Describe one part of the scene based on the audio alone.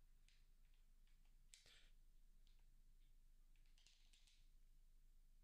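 Retro video game sound effects beep and crackle in short bursts.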